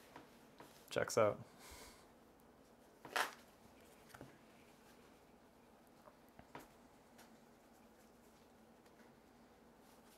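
Playing cards tap and slide on a table.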